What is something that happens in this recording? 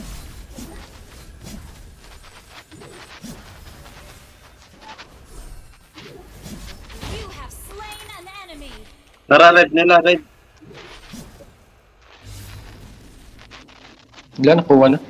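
Magic blasts whoosh and crackle in quick bursts during a fight.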